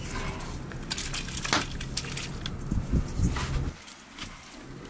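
Liquid splashes as it pours into a pot.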